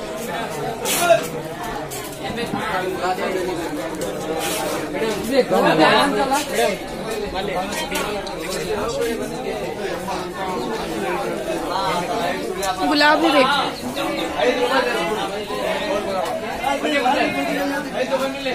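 A crowd of men and women chatters nearby in a busy street.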